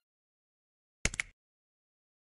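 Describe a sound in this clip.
A short game jingle plays.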